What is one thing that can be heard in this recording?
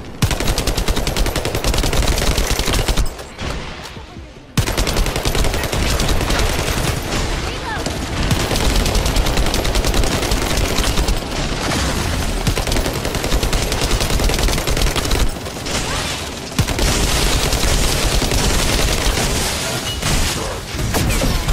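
Rapid gunfire and energy blasts crackle loudly.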